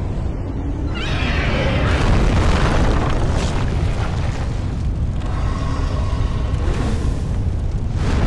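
A huge winged beast roars loudly.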